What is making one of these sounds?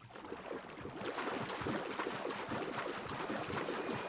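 Water swishes as someone swims.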